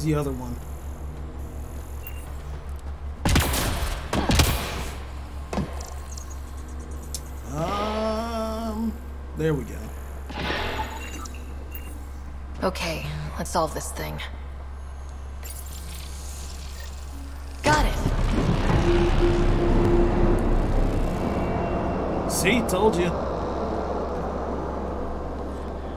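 A young man talks with animation, heard close through a microphone.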